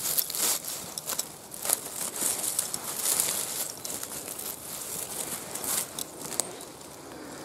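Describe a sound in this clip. Dry leaves and pine needles rustle and crackle close by.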